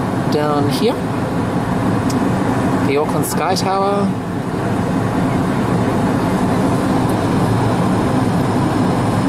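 A jet engine roars steadily from inside an airliner cabin.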